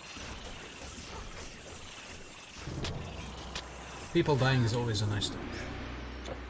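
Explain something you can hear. Fantasy combat sounds of spells and blows clash in quick bursts.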